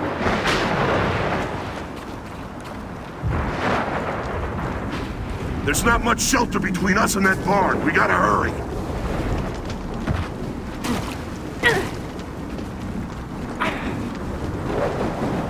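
Heavy footsteps crunch on a gravel path.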